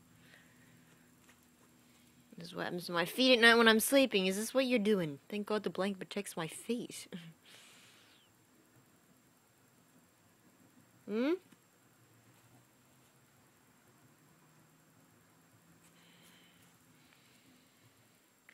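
A cat paws and scratches at a soft bed cover.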